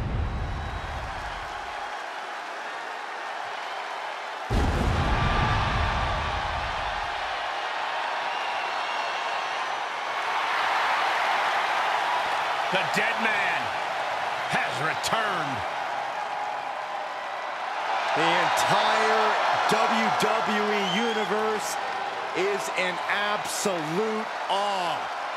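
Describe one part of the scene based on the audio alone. A huge arena crowd roars and cheers, echoing through a vast hall.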